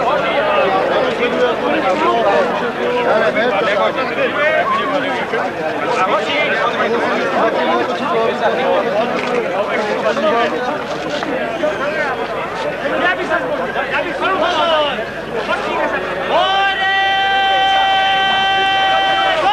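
A large crowd of men and women talks and chatters outdoors all around.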